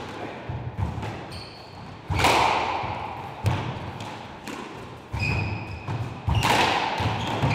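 A squash ball smacks sharply off a racket and the walls, echoing.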